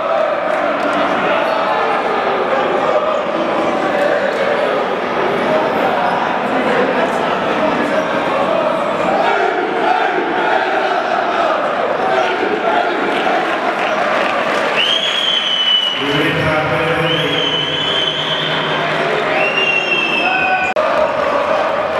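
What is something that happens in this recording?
A large crowd of men and women chants loudly together in an echoing hall.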